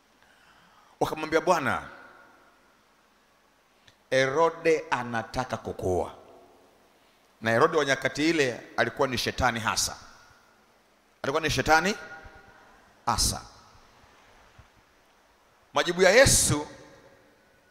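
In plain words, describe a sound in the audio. A man preaches forcefully into a microphone, his voice booming through loudspeakers in a large echoing hall.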